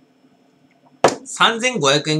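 A glass is set down on a table with a knock.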